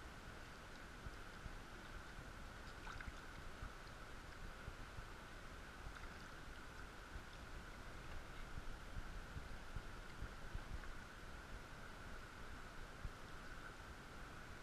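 A shallow stream babbles steadily over stones.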